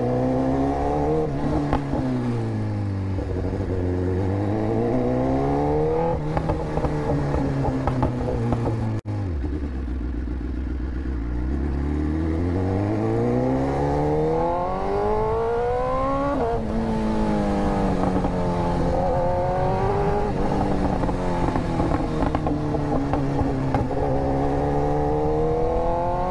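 A sport motorcycle engine hums close by, its pitch rising and falling as it speeds up and slows down.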